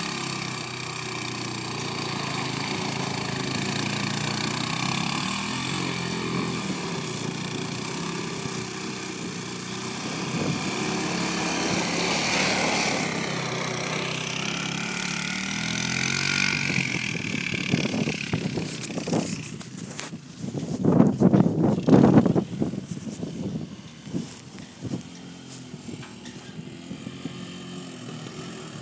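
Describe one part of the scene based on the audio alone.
A single-cylinder four-stroke ATV engine revs up and down.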